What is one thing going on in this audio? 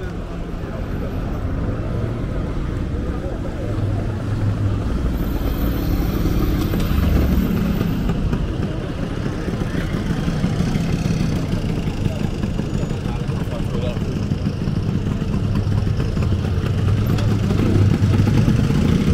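Traffic hums steadily along a busy street outdoors.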